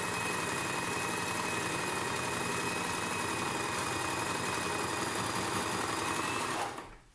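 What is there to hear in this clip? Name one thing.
A sewing machine runs steadily with a rapid whirring hum.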